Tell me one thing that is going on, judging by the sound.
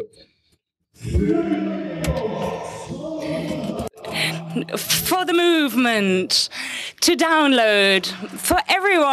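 Several men sing loudly together through a microphone on a stage, their voices sliding up and down.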